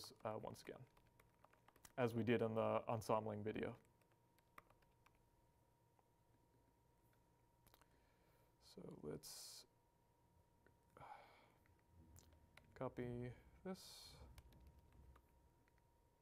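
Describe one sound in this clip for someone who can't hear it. A man speaks calmly and close by, with pauses.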